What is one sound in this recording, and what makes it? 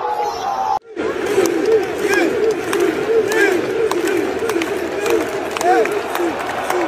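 A crowd of young women sings and chants in unison in a large stadium.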